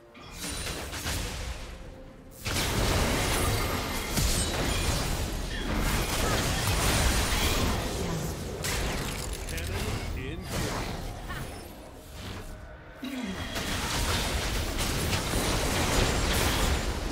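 Game spell blasts and hits crackle and boom in a fight.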